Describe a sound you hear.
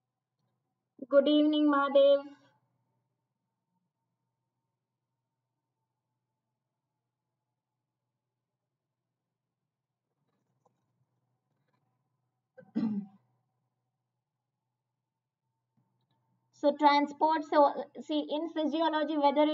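A young woman speaks calmly into a close microphone, in short bursts with long pauses.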